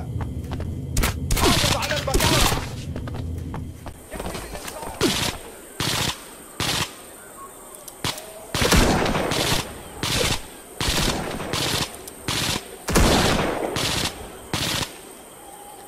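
Gunshots crack sharply, one after another.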